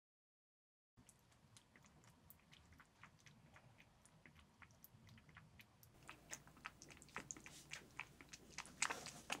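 A kitten laps water with quick soft clicks.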